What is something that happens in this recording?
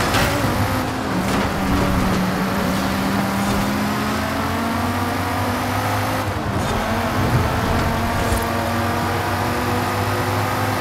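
A sports car engine roars steadily at high speed, shifting pitch as gears change.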